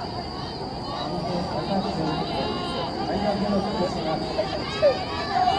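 A crowd cheers and shouts from the sidelines.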